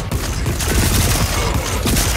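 Laser guns fire with rapid zapping bursts.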